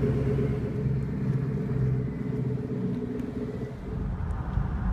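A sports car engine rumbles deeply as it pulls away.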